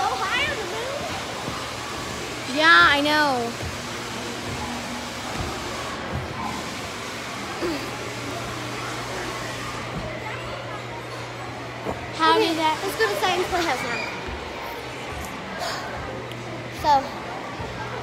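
A young girl talks animatedly close by.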